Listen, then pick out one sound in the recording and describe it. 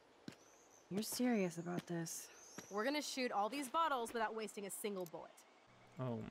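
A young woman speaks with surprise.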